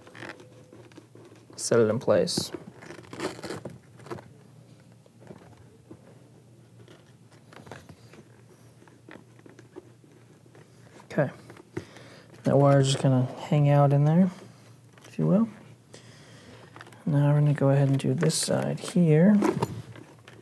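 Hands rustle and press padding inside a plastic helmet, with soft scrapes and clicks.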